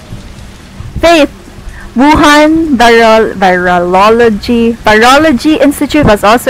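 A young woman speaks animatedly close to a microphone.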